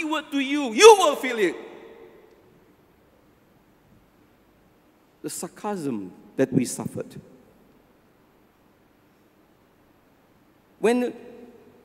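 An elderly man speaks slowly and with emphasis into a microphone, with pauses, in an echoing hall.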